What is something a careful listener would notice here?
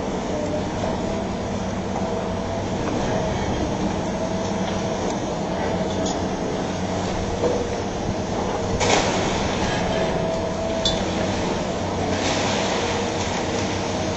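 The diesel engine of a long-reach demolition excavator runs under load.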